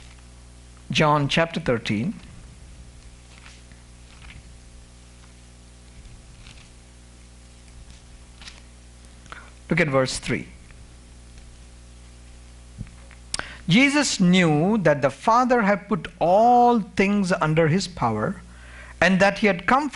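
A man speaks with animation into a microphone, with long pauses.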